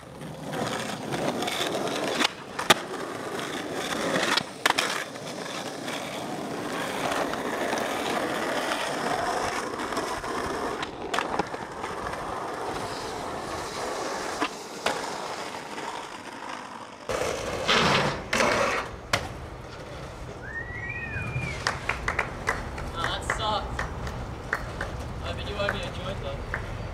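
Skateboard wheels roll and rumble on asphalt.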